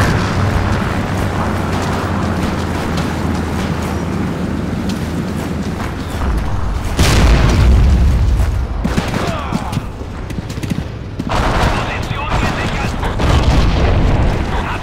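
Footsteps run over dirt ground.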